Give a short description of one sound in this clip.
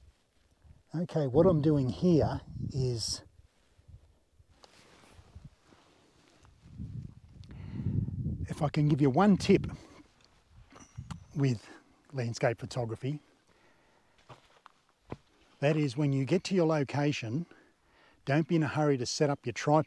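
An older man speaks calmly and with animation into a close microphone.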